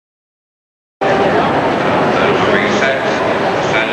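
A large crowd chatters and murmurs in a big echoing hall.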